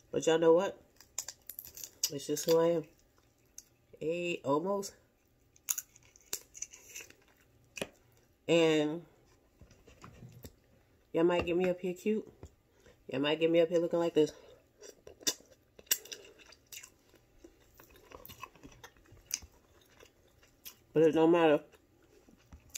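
Crab shell cracks and crunches as a woman pulls it apart.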